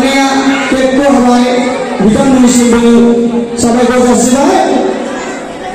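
A group of men and women sing together.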